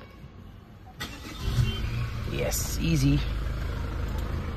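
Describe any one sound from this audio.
A car engine starts and idles.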